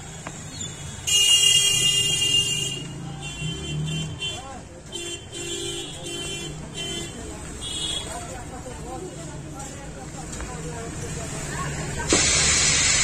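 A small loudspeaker plays tinny, crackling sound in bursts.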